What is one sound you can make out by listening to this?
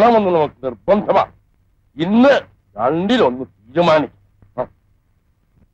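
A middle-aged man speaks loudly and with emotion, close by.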